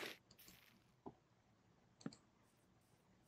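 A block breaks with a short crunch.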